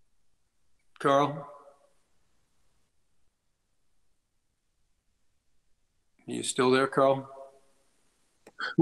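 An elderly man speaks briefly and calmly over an online call.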